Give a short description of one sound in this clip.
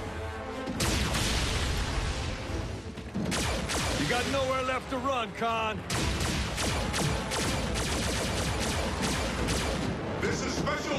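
Heavy metal crashes and clanks in rapid bursts.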